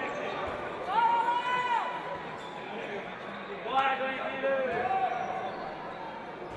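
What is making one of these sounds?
A crowd of spectators cheers and chants in an echoing hall.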